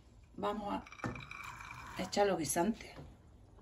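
Peas and water pour into a metal pan.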